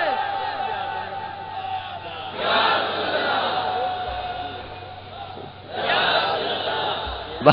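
A man speaks and chants loudly through a microphone and loudspeakers.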